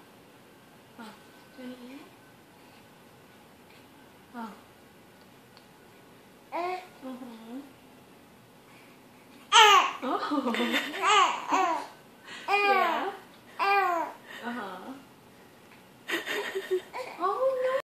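A baby coos and babbles up close.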